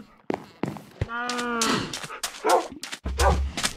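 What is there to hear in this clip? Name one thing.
A dog whines in short, rising cries.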